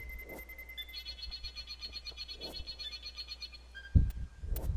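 A warning alarm beeps in quick pulses.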